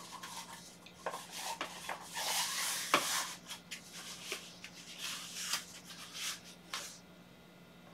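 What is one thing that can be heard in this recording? Fabric rustles as a man handles a cuff on his arm.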